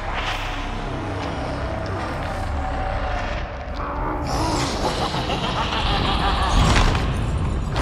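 Heavy blows and clashing metal ring out during a close fight.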